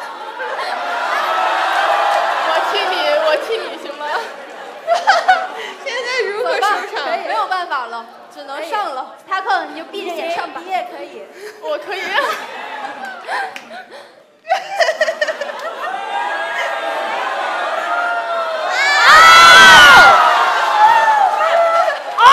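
Young women talk and laugh excitedly through microphones.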